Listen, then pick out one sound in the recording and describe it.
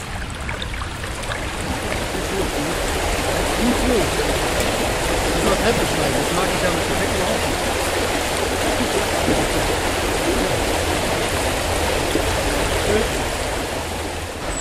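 A river rushes loudly over rocks.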